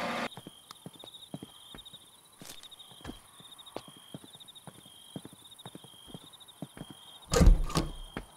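Footsteps tap on a hard path.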